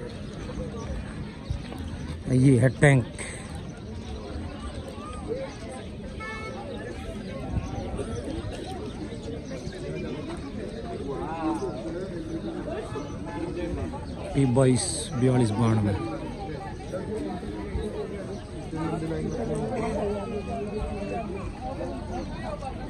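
People chat in the background outdoors.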